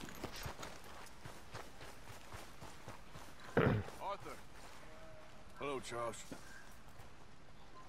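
A man's footsteps crunch on the ground.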